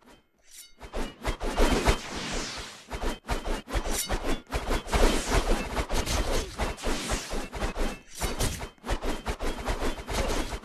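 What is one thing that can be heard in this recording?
A sword whooshes through the air again and again.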